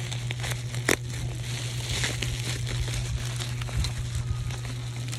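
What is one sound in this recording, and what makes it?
Bubble wrap crinkles and rustles as hands handle a package.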